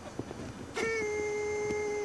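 A man talks quietly on a phone.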